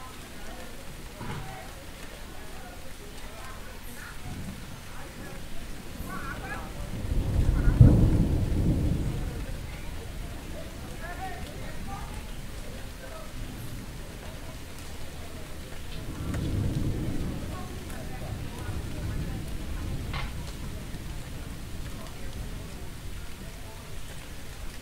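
Adults talk quietly at a distance in the street.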